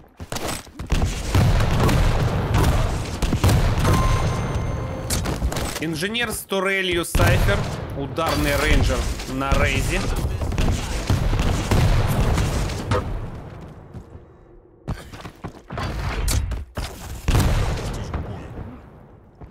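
Game gunfire cracks and booms in rapid bursts.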